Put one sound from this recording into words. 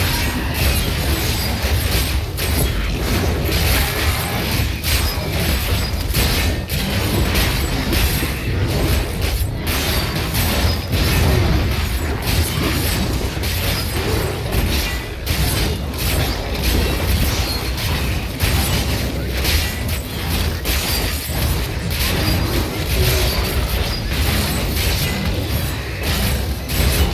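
Game combat clashes with rapid blows and bursts of spell effects.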